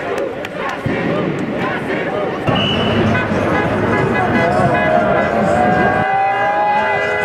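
A large crowd of men and women talks and calls out outdoors.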